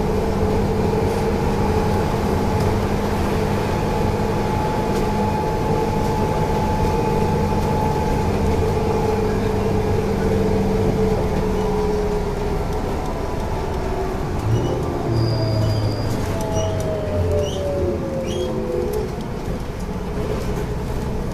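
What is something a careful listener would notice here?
A train's motor hums with a steady drone.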